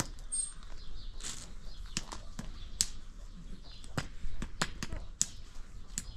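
Nutshells crack and snap sharply every so often, close by.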